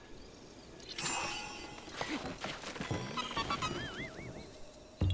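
A bright magical chime sparkles and rings out.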